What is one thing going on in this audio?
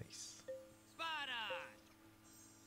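A bright, twinkling chime rings out as a game item is placed.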